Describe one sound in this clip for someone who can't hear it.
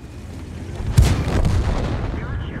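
A shell explodes with a heavy blast.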